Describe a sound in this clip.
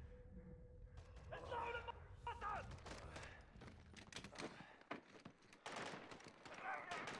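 Rapid gunfire bursts out at close range.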